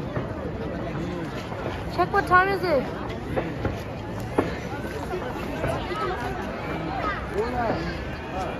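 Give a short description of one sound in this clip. A large outdoor crowd chatters and cheers loudly all around.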